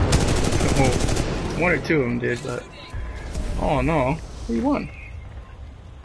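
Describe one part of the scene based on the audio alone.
Gunfire and explosions boom loudly in a game.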